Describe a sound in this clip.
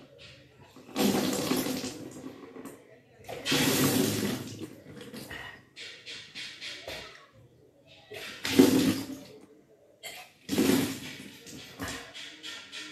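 A young woman gags and retches loudly, close by.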